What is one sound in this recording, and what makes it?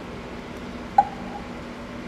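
Metal clicks sharply on a lathe.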